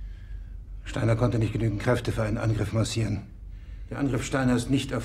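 A man speaks gravely in a deep voice.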